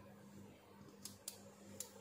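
A button clicks softly as a finger presses it.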